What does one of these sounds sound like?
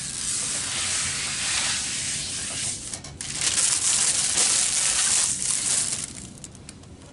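Plastic film crinkles and rustles as it is handled.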